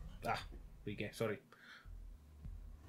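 A man speaks animatedly into a microphone.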